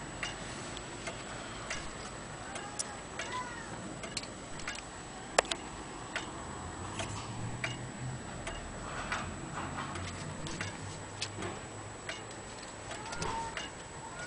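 A pendulum clock ticks.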